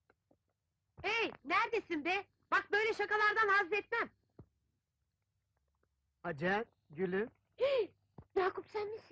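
A woman calls out loudly and excitedly.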